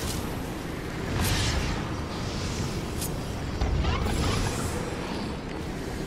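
A magical energy blast crackles and hums.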